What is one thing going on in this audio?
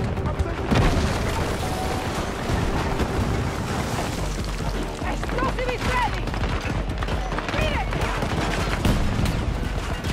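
Gunfire cracks in bursts.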